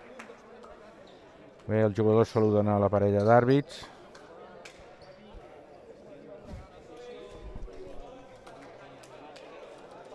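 A basketball bounces on a hard floor in an echoing hall.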